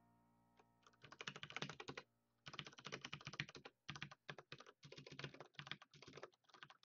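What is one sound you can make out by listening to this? Keyboard keys clatter rapidly under fast typing.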